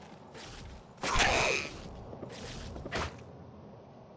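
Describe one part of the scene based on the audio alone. Weapons strike and clash in a short fight.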